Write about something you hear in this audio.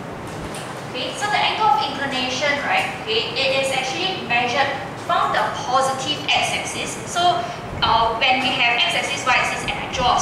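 A young woman speaks clearly, in a room with a slight echo.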